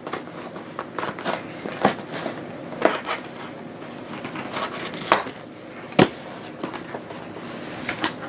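Cardboard scrapes and rustles as a box is torn open.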